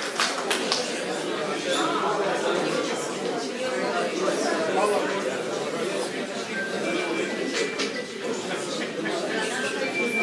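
People chatter quietly in a crowd.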